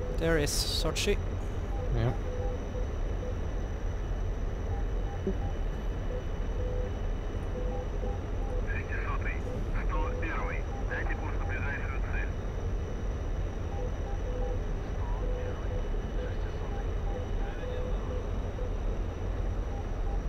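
A jet engine roars steadily with a low rumble.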